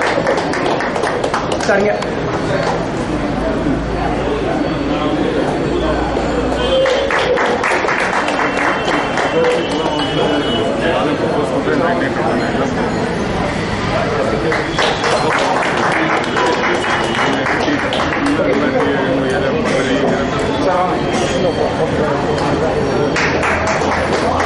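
A crowd of men and women chatter.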